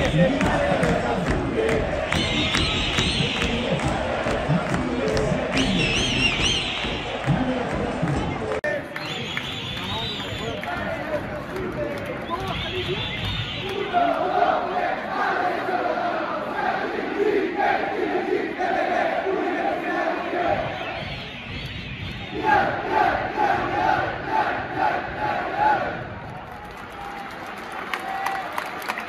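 A large stadium crowd sings and chants loudly outdoors.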